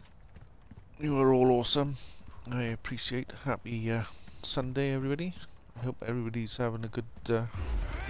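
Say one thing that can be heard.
A man talks with animation into a microphone, close by.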